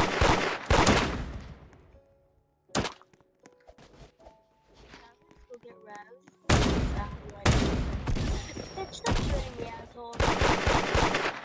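Gunshots fire in loud rapid bursts with a ringing tail.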